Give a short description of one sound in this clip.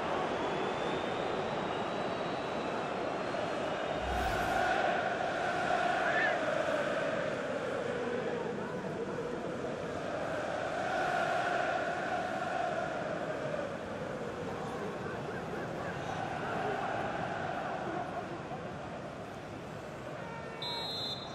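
A large stadium crowd chants and roars steadily, swelling and fading.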